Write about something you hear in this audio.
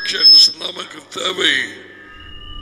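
A man talks calmly and closely into a microphone.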